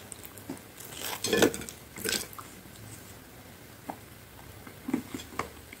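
Crispy food rustles and crackles as fingers pick it up, close to a microphone.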